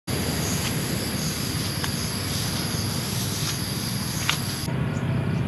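Footsteps swish through tall grass outdoors.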